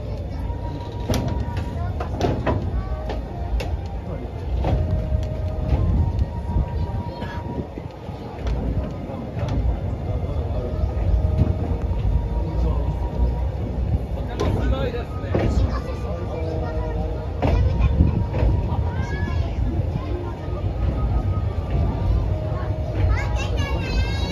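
Metal couplings clank and rattle as the train rolls along.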